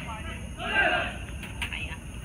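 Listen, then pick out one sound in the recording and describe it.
A young man shouts from far off across the field.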